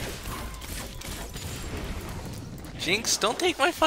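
Magic spells whoosh and hits crackle in a fantasy battle.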